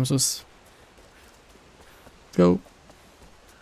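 A man speaks briefly and loudly into a microphone.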